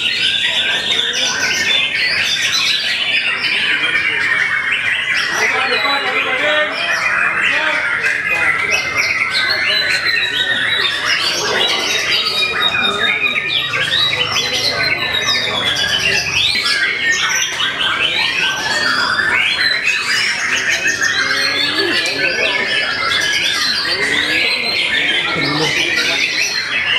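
Many songbirds sing loudly and continuously, with rapid chirps, trills and whistles overlapping.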